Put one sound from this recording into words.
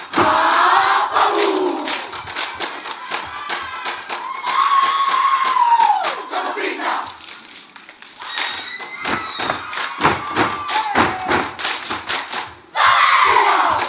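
Performers clap and slap their bodies in a quick rhythm.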